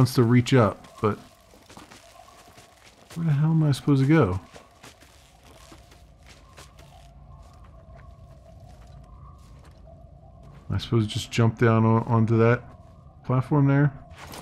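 Leaves rustle as someone climbs through dense foliage.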